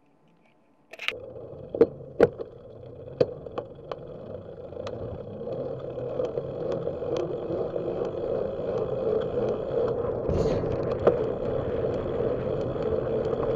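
Bicycle tyres roll and rattle over a bumpy road.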